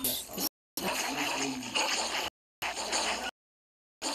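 A wolf snarls and growls while fighting.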